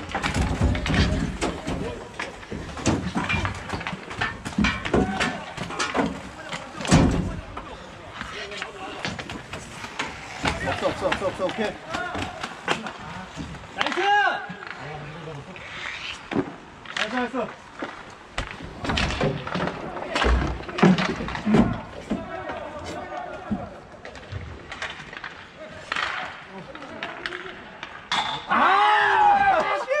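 Hockey sticks clack and knock sharply.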